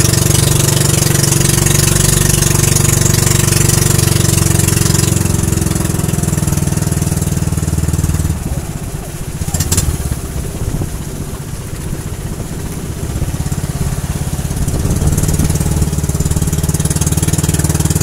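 A boat engine drones loudly and steadily.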